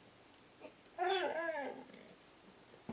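A dog gives a short whine.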